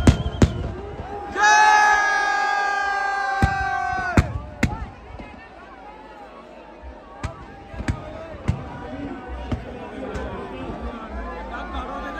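A large crowd cheers and chatters nearby.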